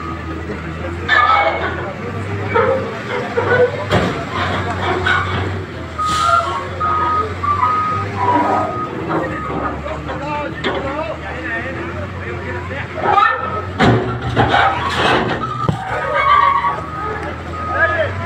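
Concrete slabs crash and crack as a wall is knocked down.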